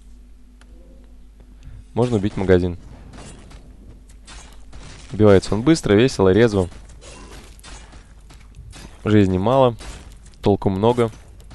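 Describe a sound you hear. Swords clash and spells crackle in a battle of game characters.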